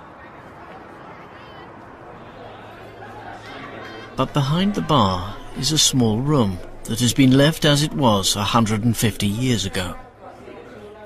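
A crowd of adults murmurs softly in the background.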